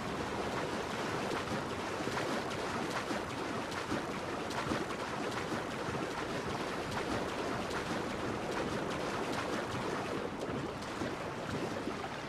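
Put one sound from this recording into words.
A swimmer's strokes splash and slosh through water.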